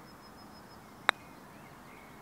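A golf club taps a ball with a sharp click.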